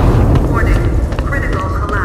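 Steam hisses from vents.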